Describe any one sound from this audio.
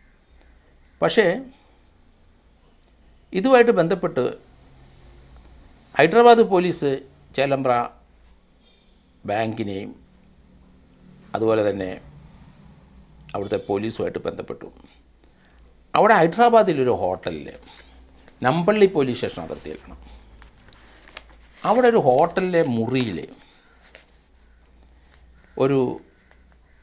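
A middle-aged man speaks calmly and slowly into a close microphone, with pauses.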